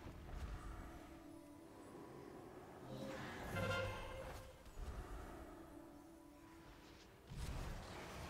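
Spell effects whoosh and chime during a fantasy game battle.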